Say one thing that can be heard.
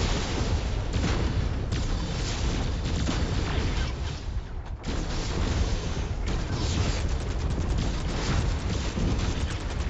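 Laser weapons buzz and zap in rapid bursts.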